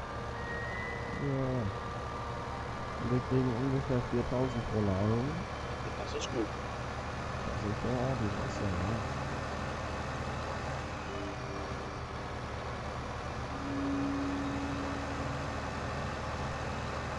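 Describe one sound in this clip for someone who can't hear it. A tractor engine rumbles steadily as the tractor drives along.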